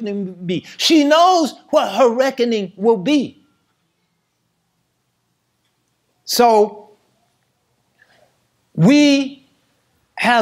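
A middle-aged man speaks with animation, pausing between phrases.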